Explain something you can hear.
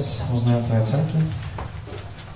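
A young person speaks into a microphone over loudspeakers in a large hall.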